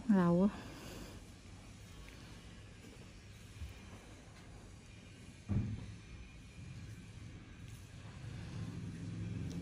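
A metal tool scrapes softly against skin.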